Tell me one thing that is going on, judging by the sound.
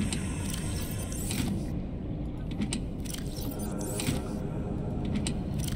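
Soft game menu clicks and chimes sound.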